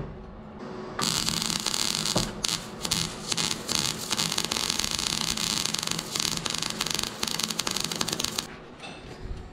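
A MIG welder's arc crackles and sizzles on steel.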